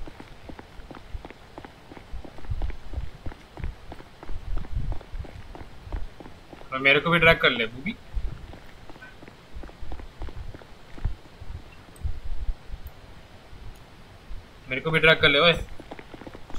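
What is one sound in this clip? Running footsteps thud quickly on a hard floor.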